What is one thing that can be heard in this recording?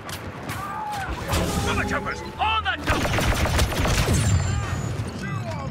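Laser blasters fire in quick zapping bursts close by.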